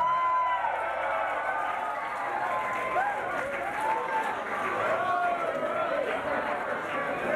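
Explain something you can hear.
Audience members whistle loudly.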